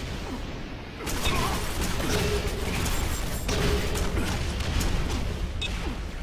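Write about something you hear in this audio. A rocket launcher fires repeatedly with loud blasts and explosions.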